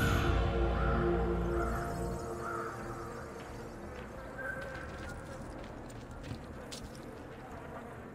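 Footsteps run and walk quickly over stone paving.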